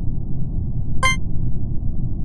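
A short electronic chime rings out as a voting round opens.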